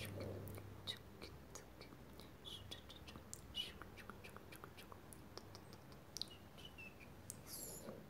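Fingernails tap and rustle close to a microphone.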